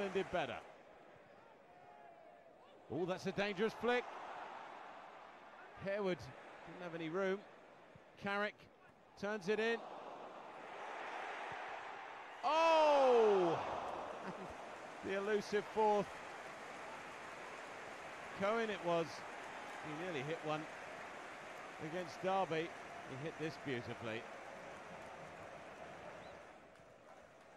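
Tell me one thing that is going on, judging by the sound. A large crowd in a stadium roars and cheers.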